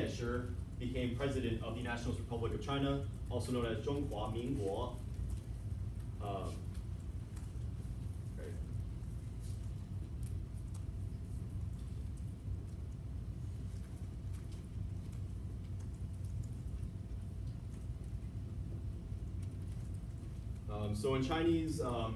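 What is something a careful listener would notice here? A young man speaks clearly to a room, pausing now and then.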